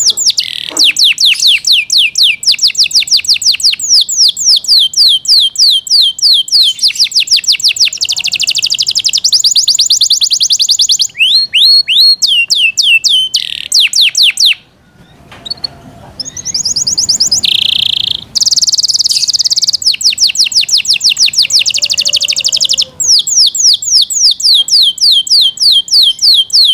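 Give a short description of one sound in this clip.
A canary sings close by in long, rapid trills and chirps, pausing briefly midway.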